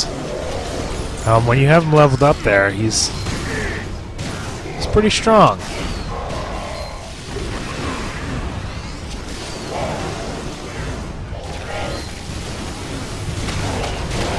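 Magic blasts crackle and burst during a fight.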